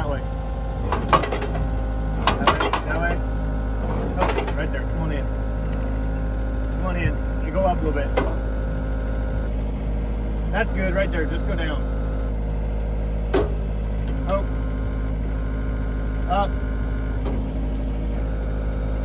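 A diesel engine idles steadily with a low hum.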